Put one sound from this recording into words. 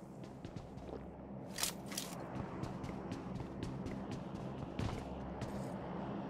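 Footsteps patter quickly over grass and stone.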